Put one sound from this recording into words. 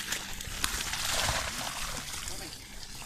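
Water splashes as a bucket is poured out.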